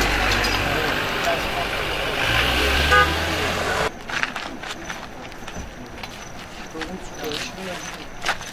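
Men talk among themselves nearby, outdoors.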